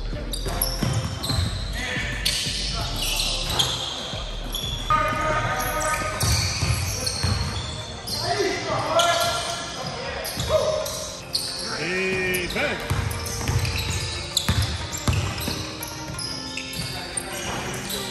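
Young men shout and call out to each other across the echoing gym.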